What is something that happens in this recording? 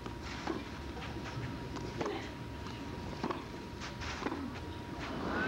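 A tennis ball is struck hard by rackets in a rally.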